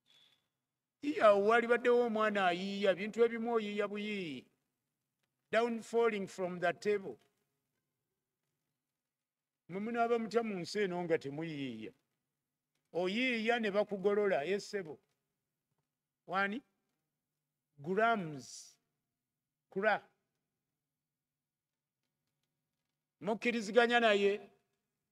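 A middle-aged man speaks calmly into a microphone in bursts with pauses.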